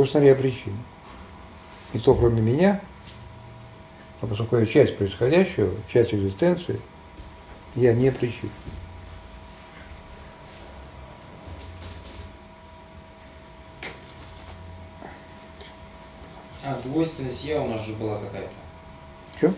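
An older man speaks calmly and with animation, close to a microphone.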